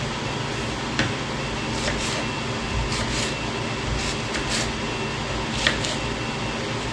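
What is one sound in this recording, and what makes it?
A knife taps on a wooden cutting board while chopping onion.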